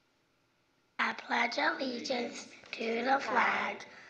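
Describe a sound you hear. A young girl speaks clearly into a microphone, heard through a loudspeaker in a large room.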